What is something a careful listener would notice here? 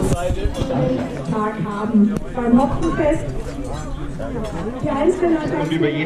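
A woman speaks into a microphone through a loudspeaker.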